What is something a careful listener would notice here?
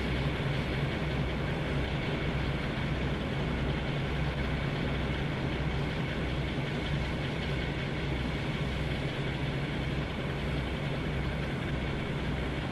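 A diesel locomotive engine idles with a deep, steady throb.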